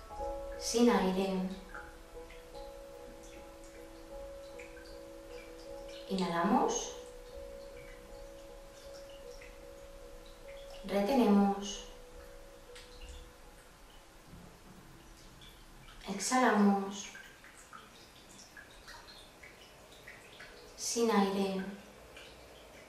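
A woman sighs out loud, her voice falling, every few seconds.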